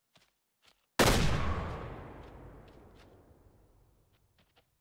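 A shotgun fires a single loud blast that echoes away across open country.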